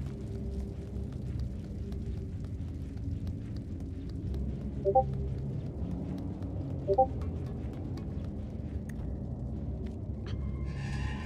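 Small footsteps patter softly across a hard floor.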